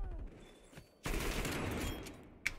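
A shotgun fires in a video game.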